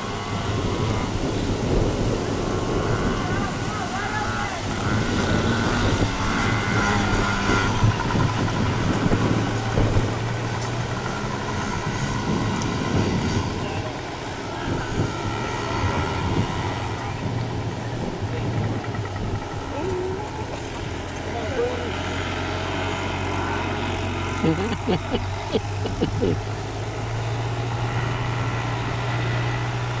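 Small dirt bike engines buzz and whine nearby.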